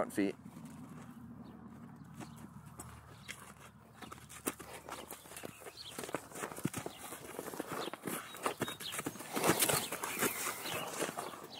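A horse's hooves thud softly on sand.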